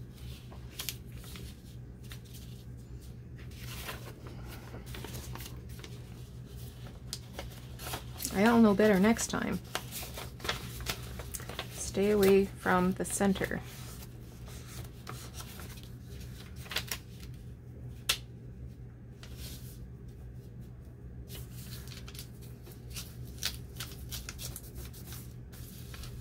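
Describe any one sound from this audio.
Paper rustles and crinkles as it is folded and slid across a table.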